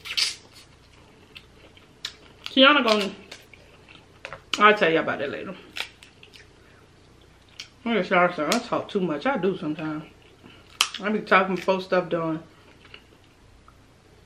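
Crab shells crack and snap in a woman's hands.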